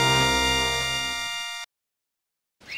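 Bright electronic game music plays loudly, then cuts off.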